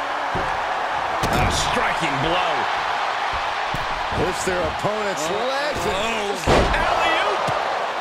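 A body slams hard onto a mat.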